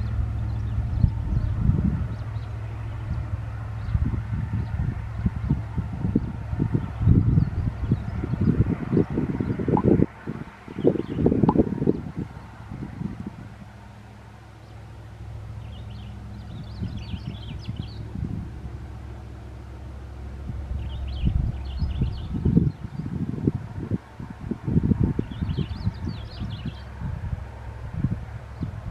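A diesel-electric locomotive drones in the distance, labouring as it hauls a heavy freight train up a steep grade.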